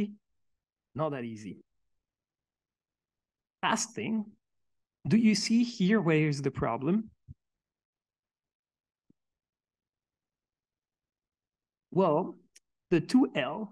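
A man speaks calmly into a microphone in a large room, with pauses.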